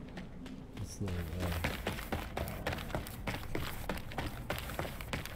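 Footsteps tap on stone stairs.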